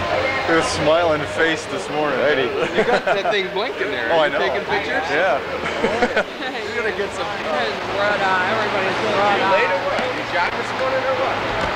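A middle-aged man talks and laughs close by.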